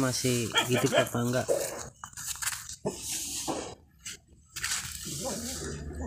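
Leaves and twigs rustle close by.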